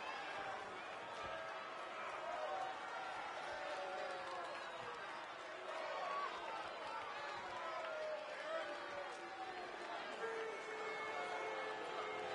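A large crowd cheers and chants steadily in a big arena.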